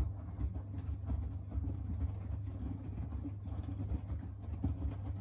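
Wet laundry tumbles and thumps inside a washing machine drum.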